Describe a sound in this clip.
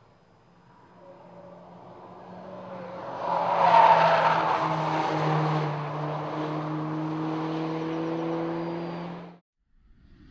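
A car engine roars as a car approaches, passes close by and drives away.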